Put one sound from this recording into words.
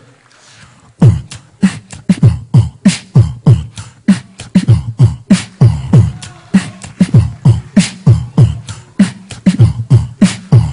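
A man beatboxes a fast, steady rhythm into a microphone.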